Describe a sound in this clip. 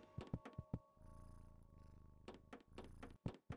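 A cartoon scuffle clatters and thumps.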